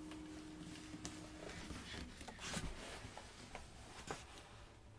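A guitar knocks and bumps as it is put down.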